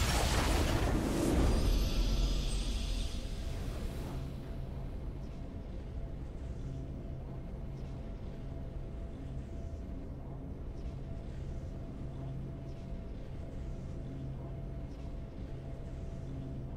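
A triumphant fanfare plays and then holds a soft, steady chord.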